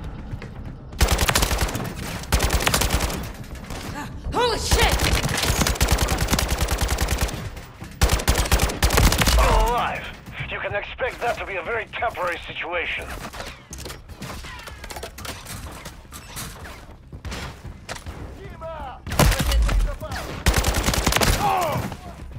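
A rifle fires rapid, loud bursts in an echoing hall.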